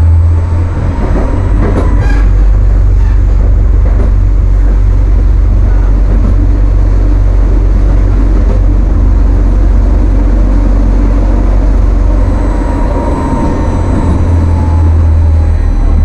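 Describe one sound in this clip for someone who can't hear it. Tram wheels squeal faintly on the rails.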